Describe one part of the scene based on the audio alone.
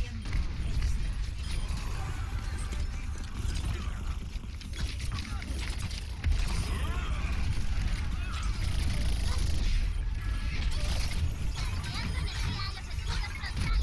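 Game guns fire in rapid bursts.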